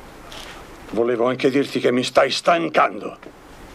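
An elderly man speaks gruffly, close by.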